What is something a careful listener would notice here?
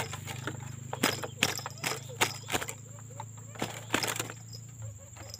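A wire cage rattles as hands handle it.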